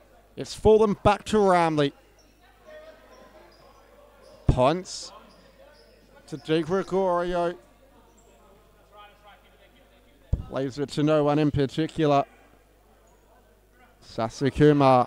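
A ball is kicked.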